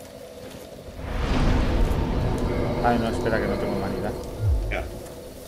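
A fire flares up with a rushing whoosh.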